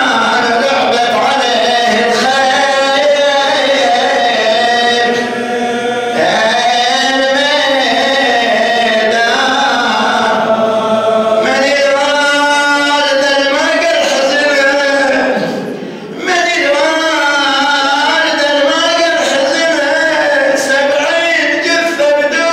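An elderly man chants melodically through a microphone in a reverberant hall.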